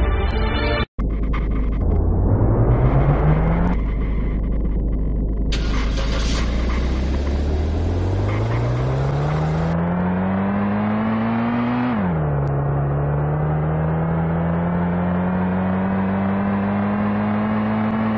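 A car engine revs up, rising in pitch, drops briefly as it shifts gear, then climbs again.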